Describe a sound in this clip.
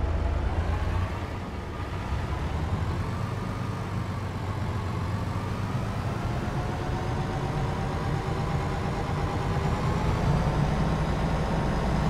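A truck engine hums steadily, rising and falling in pitch as it turns and drives.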